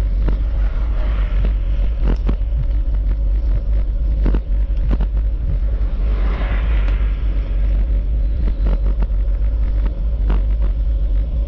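Wind rumbles across outdoors.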